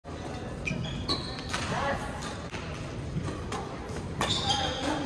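Sneakers squeak sharply on a hard floor.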